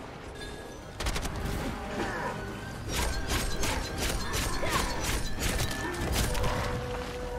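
A blade slashes and clangs against metal.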